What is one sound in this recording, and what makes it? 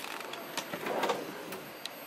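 A cupboard door clicks and slides open.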